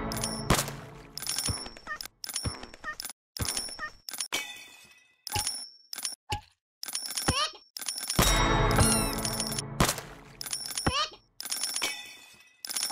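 Game coins jingle and clink repeatedly.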